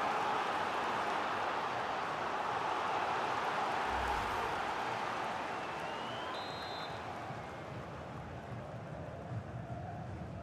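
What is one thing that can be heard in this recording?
A large crowd cheers loudly, then slowly quietens.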